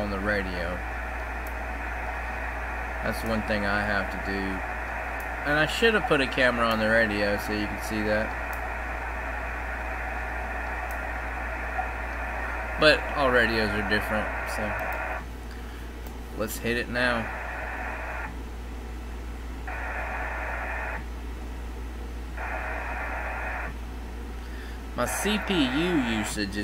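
Radio static hisses and crackles through a receiver's speaker.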